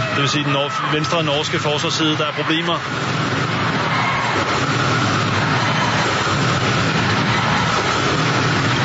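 A large crowd cheers and chants loudly in an echoing hall.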